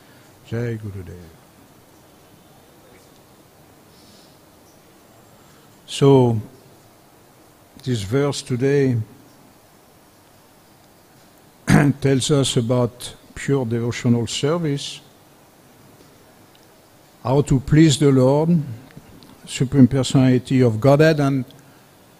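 An older man speaks slowly into a microphone, with long pauses.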